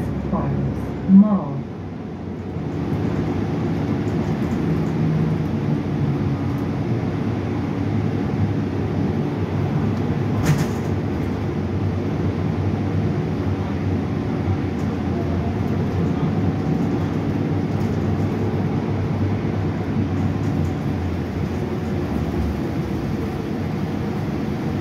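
A bus engine rumbles low and steady while the bus drives along.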